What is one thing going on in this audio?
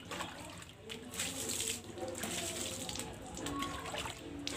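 Water splashes as a cup is dipped and poured.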